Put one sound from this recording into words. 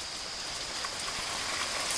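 Water trickles and splashes down onto the forest floor.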